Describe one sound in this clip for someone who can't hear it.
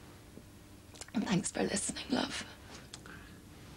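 A woman speaks tearfully up close.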